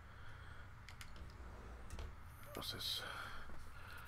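A drawer slides open.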